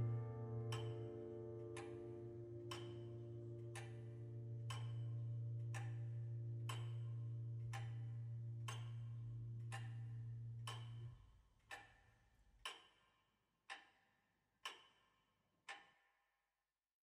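A clock ticks steadily, each tick ringing metallically.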